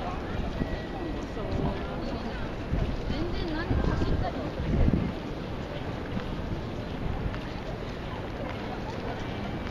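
A busy crowd chatters outdoors.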